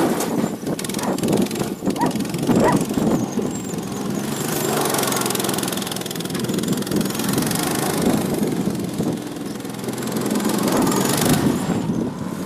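A small kart engine buzzes and revs as the kart drifts around nearby.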